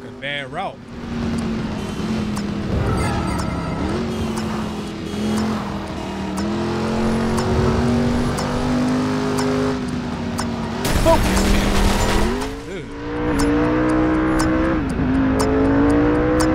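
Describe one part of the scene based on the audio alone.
A car engine roars steadily and revs up and down.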